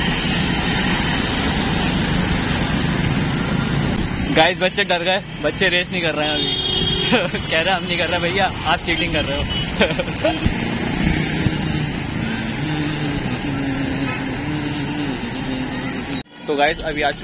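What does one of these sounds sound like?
Traffic rumbles along a busy street outdoors.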